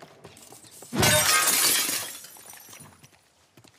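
Glass shatters loudly as a display case is smashed.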